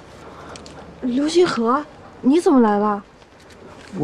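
A young woman speaks with surprise and concern.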